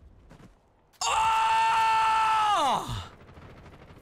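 A man shouts loudly into a microphone.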